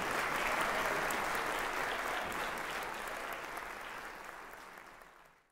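An audience applauds in a large hall and the clapping slowly fades.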